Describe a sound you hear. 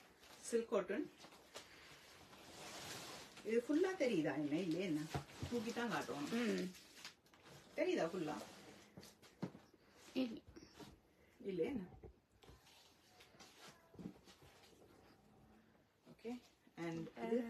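A middle-aged woman speaks with animation close by.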